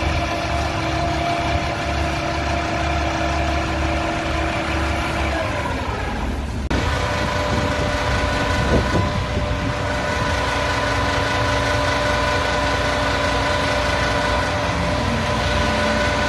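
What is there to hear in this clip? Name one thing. A high-pressure hose sprays water with a steady hiss.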